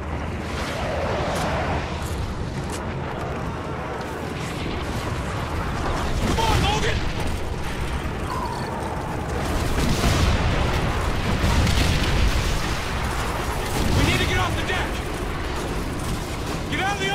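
Explosions boom and rumble in the distance.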